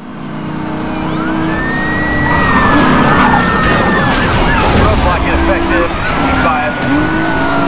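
Police sirens wail nearby.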